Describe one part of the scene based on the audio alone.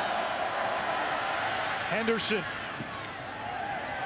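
Football players crash together in a tackle.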